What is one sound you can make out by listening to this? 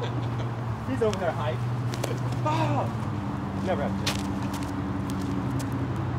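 A young man laughs and talks cheerfully nearby.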